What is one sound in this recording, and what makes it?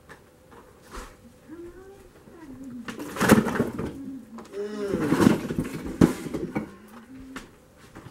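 Firewood logs knock and clatter.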